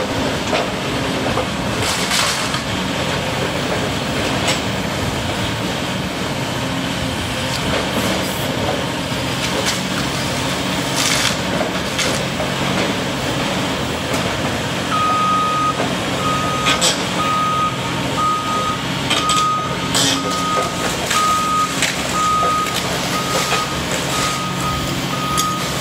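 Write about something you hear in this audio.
A heavy excavator engine rumbles steadily close by.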